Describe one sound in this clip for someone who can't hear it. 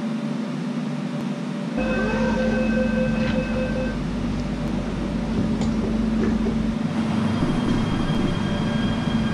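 A train's motors hum steadily.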